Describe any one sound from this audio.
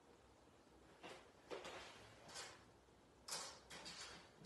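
Hands rustle and brush through hair close by.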